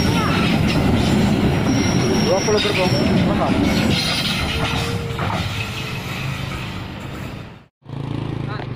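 A freight train rattles past close by.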